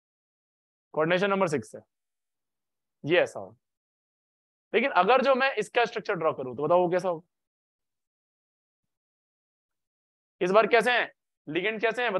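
A young man speaks calmly and clearly into a microphone, in short bursts with pauses.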